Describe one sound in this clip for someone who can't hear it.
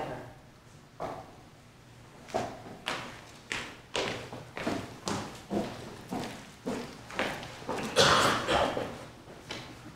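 Heels click on a hard floor as people walk away.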